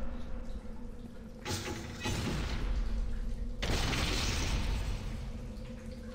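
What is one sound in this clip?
Water rushes and splashes through a gate.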